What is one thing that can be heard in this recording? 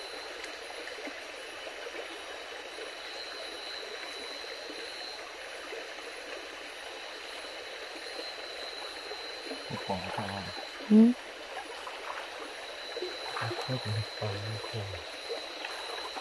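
Feet splash through shallow water.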